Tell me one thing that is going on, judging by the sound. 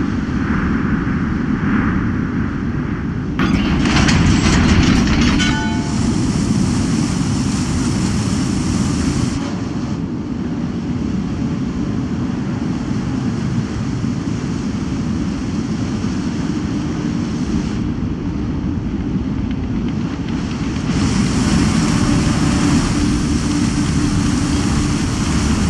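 Water rushes and splashes along a moving ship's hull.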